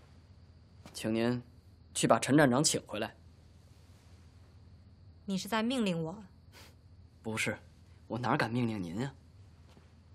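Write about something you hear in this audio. A young woman speaks calmly and firmly, close by.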